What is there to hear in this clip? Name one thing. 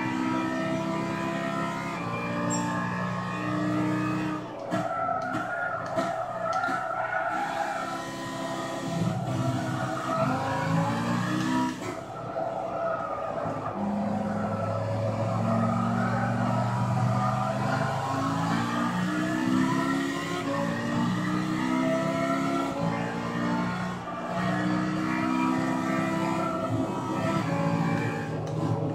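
Other racing cars' engines whine close by.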